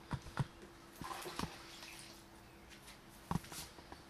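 A hand scrapes and stirs paste in a plastic tub.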